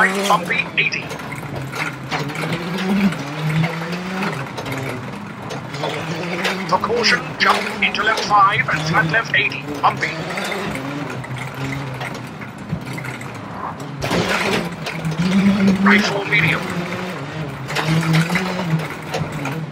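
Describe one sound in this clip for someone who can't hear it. A rally car engine roars and revs up and down as gears change.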